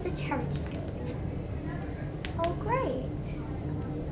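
A young girl speaks briefly nearby.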